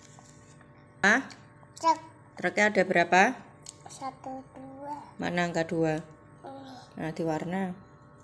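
A young child speaks close by.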